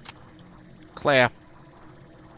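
A game character's weapon is swapped with a short, sharp whirring clatter.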